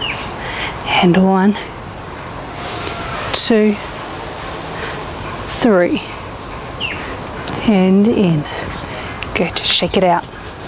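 A woman speaks calmly outdoors.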